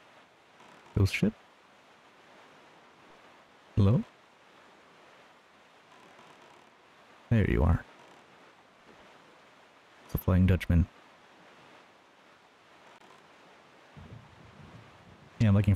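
A small sailboat thumps and splashes over waves at intervals.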